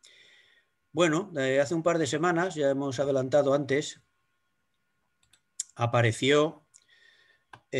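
An elderly man speaks calmly into a computer microphone.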